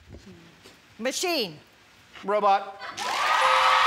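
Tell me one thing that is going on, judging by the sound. A middle-aged woman exclaims in surprise.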